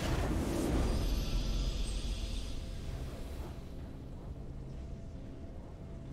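A triumphant fanfare swells and fades.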